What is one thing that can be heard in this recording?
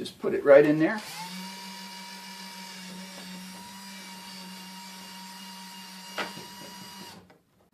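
A cordless drill whirs steadily as a screw is driven in.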